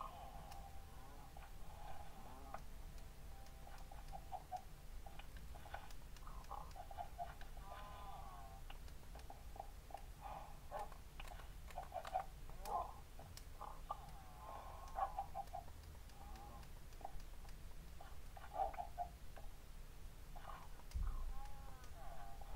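Short game sound effects pop and click as blocks break and items are picked up.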